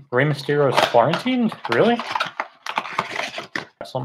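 Hands tear open a cardboard box flap.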